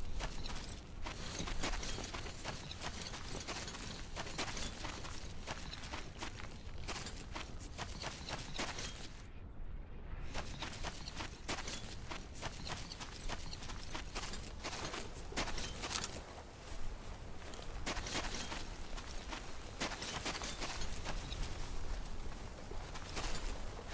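Footsteps crunch through dry grass and sand.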